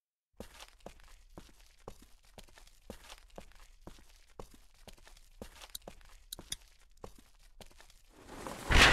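Footsteps tread steadily on pavement.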